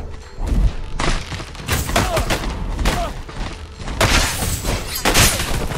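A heavy sword whooshes as it swings through the air.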